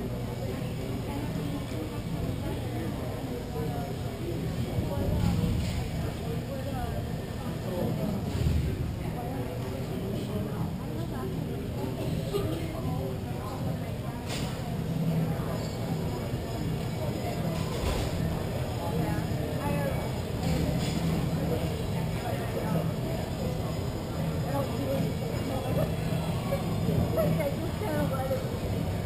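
Skates scrape and roll across the floor of a large echoing hall.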